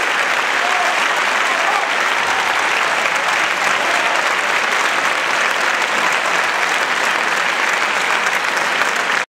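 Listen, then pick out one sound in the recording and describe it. A folk band of plucked string instruments plays in a large hall.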